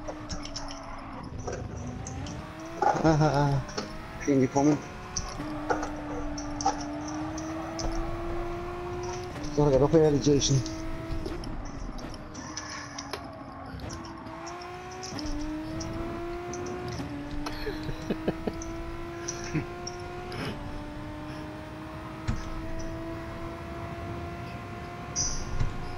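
A race car engine revs hard, climbing in pitch and dropping with each gear change.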